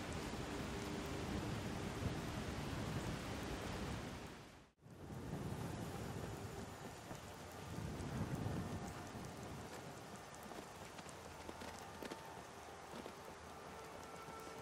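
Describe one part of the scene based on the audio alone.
Footsteps crunch on a dirt path.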